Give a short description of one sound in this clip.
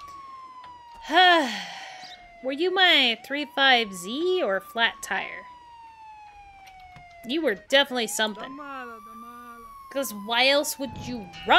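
A young woman talks and exclaims with animation into a close microphone.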